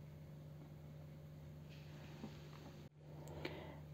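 Soil rustles softly as fingers press it down.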